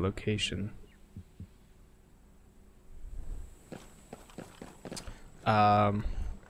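A man speaks casually into a microphone, close by.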